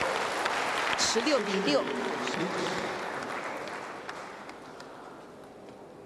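A crowd cheers and applauds in a large hall, then fades.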